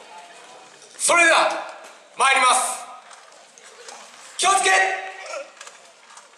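A man shouts loudly nearby in short, rising calls.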